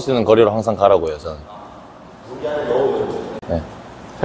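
A young man speaks calmly.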